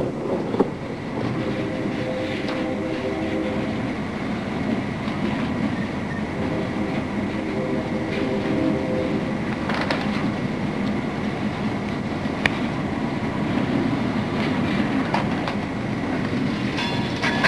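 A train engine drones steadily in the distance.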